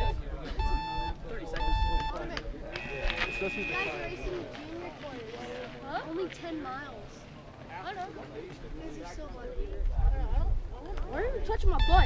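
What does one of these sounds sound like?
Spectators shout and cheer beside the trail.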